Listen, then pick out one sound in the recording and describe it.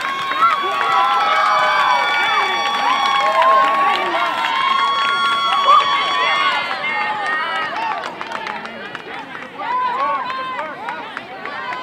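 A small crowd cheers and shouts from a distance.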